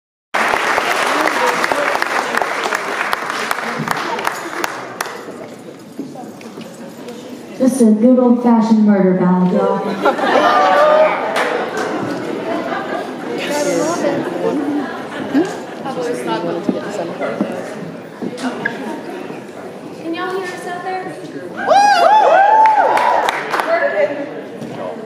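A crowd of young people shouts and chatters loudly close by.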